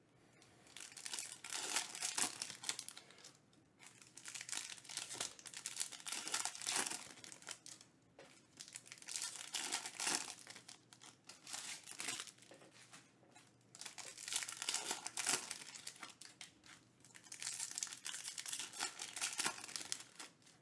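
Foil card wrappers crinkle and tear as they are ripped open.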